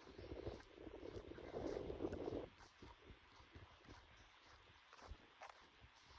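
Footsteps tread on dry earth outdoors.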